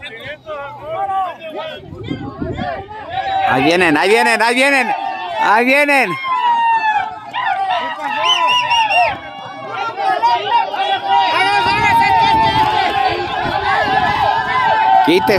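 A crowd of men and women shout and cheer excitedly outdoors.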